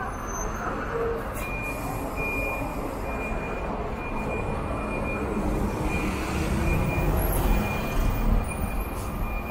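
A bus engine rumbles as the bus pulls slowly forward.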